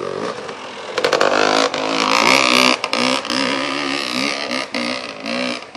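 A motorcycle rides past close by, its engine roaring loud.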